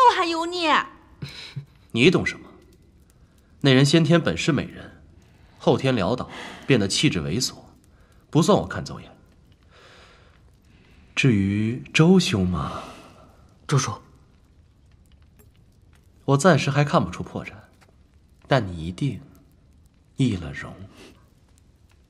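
A young man speaks calmly and playfully, close by.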